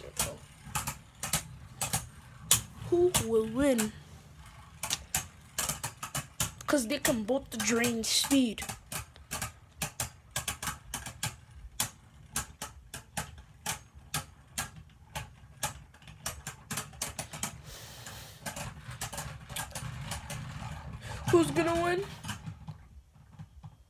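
Spinning tops clatter and click against each other in a plastic arena.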